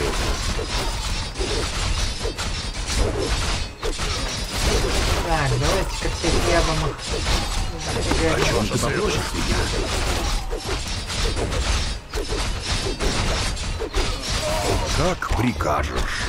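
Magic spells crackle and burst.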